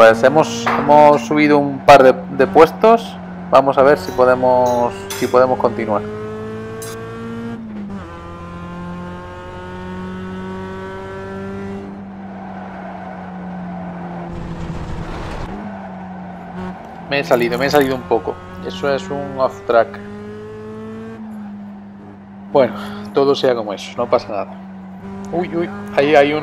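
A racing car engine drones steadily, its pitch shifting as it changes gear.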